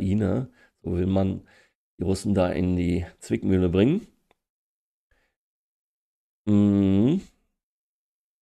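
A middle-aged man talks calmly into a microphone, heard as if over an online call.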